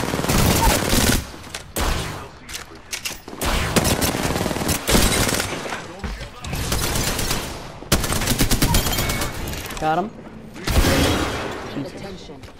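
Rapid gunfire bursts loudly in quick volleys.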